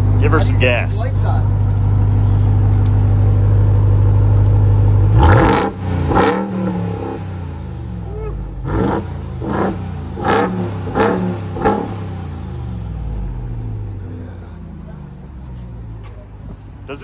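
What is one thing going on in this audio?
A large truck engine idles with a deep, steady rumble.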